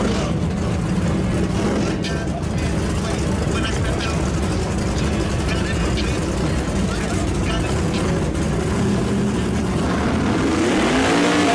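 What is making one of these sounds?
A loud race car engine rumbles at idle close by.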